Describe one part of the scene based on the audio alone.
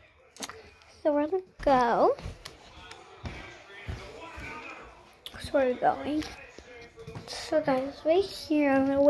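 A young girl speaks close to the microphone in a high, playful voice.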